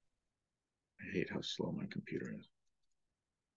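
A woman speaks briefly and calmly through a computer microphone.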